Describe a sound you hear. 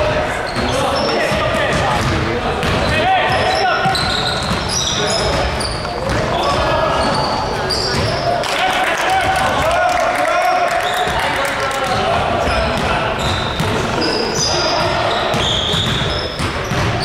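Young men shout and call out across an echoing gym.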